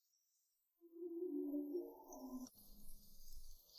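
A phone rings with a short tune.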